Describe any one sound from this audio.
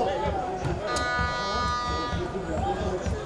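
A referee's whistle blows a long blast.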